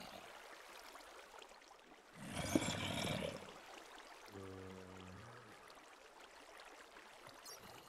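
Water flows and splashes nearby.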